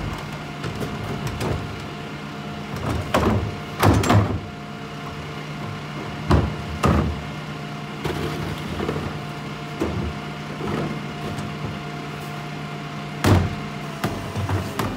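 A garbage truck engine idles with a steady hum.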